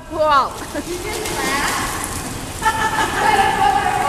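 Water bubbles and churns in a hot tub.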